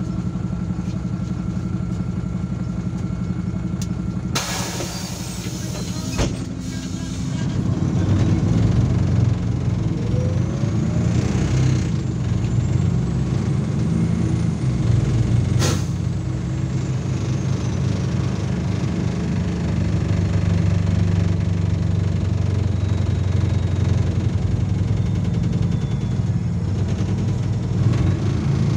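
A bus engine rumbles steadily, growing louder as the bus pulls away.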